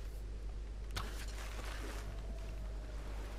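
A bow twangs as an arrow is released.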